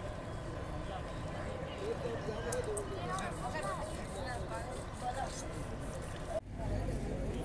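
Water splashes gently as people bathe at a river's edge.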